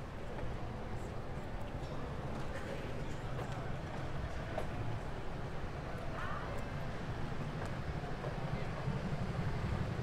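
Footsteps tap on a stone pavement outdoors.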